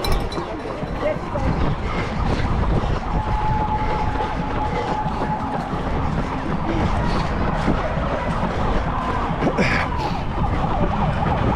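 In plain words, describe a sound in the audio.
Running footsteps patter on pavement close by.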